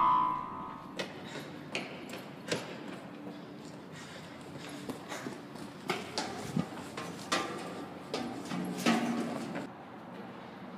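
Footsteps run and slap on concrete, echoing in a large open space.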